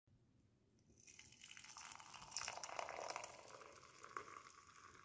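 Milk pours into a cup with a frothy splash.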